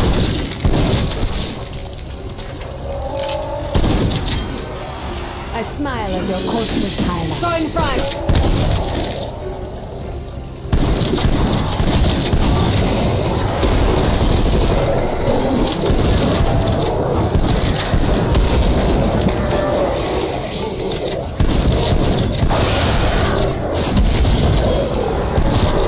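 Rapid gunfire bursts out in short volleys.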